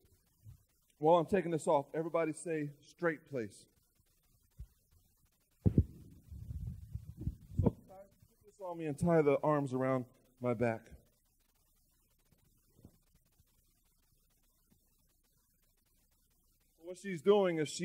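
A man speaks with animation into a microphone in pauses.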